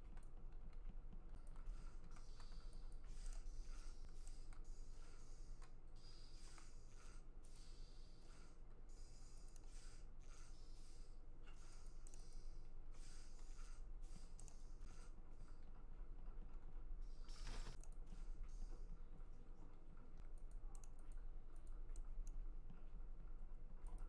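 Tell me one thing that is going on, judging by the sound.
Light footsteps patter quickly across a hard floor.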